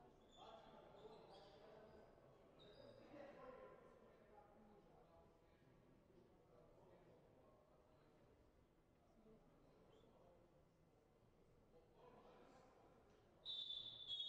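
Men talk calmly nearby in an echoing hall.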